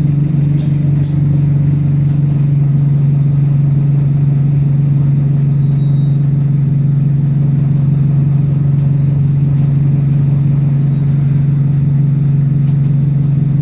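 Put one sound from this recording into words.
A bus engine hums low and steady from inside the bus.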